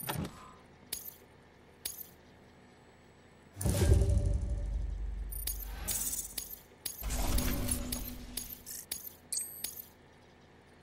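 Short electronic clicks and chimes sound as game scores tally up.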